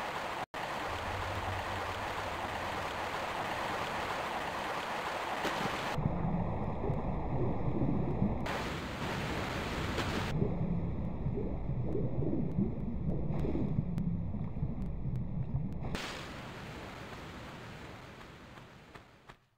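Water rushes steadily and echoes in a cave.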